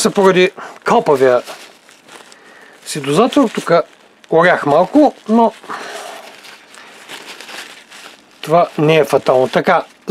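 Paper tissue rustles and crinkles between fingers.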